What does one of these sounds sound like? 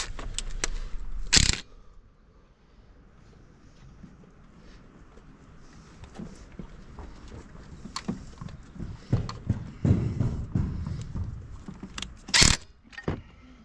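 A cordless drill whirs in short bursts.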